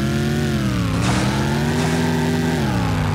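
Metal scrapes and crashes as two cars collide.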